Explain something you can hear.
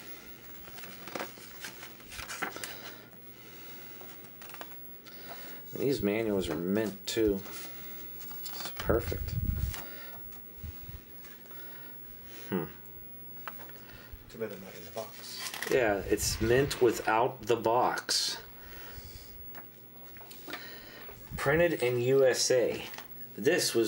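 Paper pages rustle and flip as a booklet is leafed through by hand.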